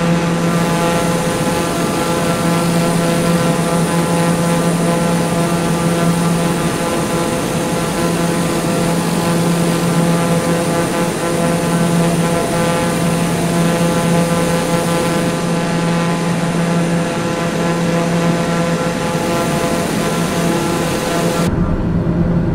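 A propeller plane's engine drones steadily outside.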